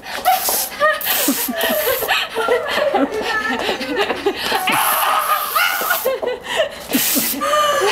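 A young woman shouts with excitement.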